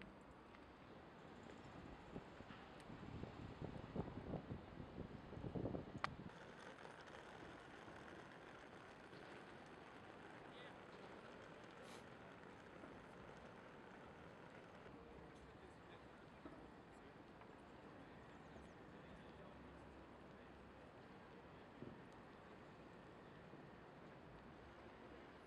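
Outdoors, a steady murmur of distant city noise.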